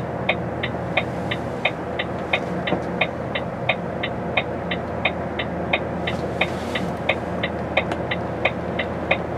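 A vehicle engine idles, heard from inside the vehicle.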